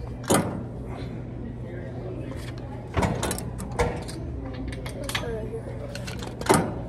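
A weight stack on a cable machine clanks sharply several times.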